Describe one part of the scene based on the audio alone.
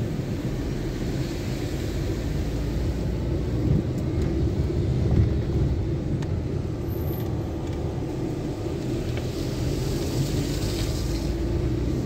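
Tyres rumble and crunch over a bumpy dirt road.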